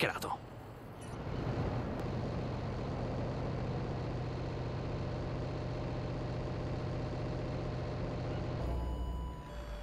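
A van engine hums steadily as it drives.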